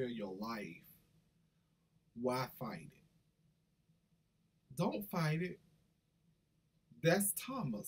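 A middle-aged man speaks with animation close to the microphone, in short bursts with pauses.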